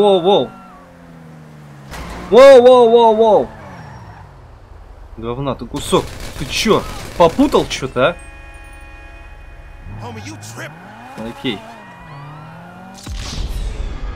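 A sports car engine revs and roars.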